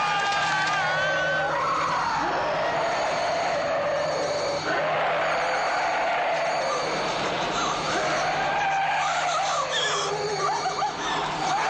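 A young woman screams in terror.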